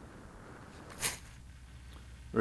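A small aircraft thumps into the grass.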